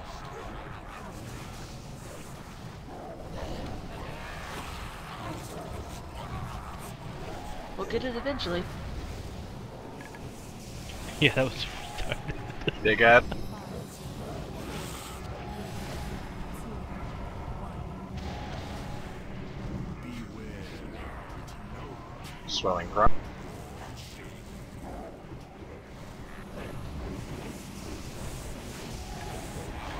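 Magic spells whoosh and crash during a fantasy battle.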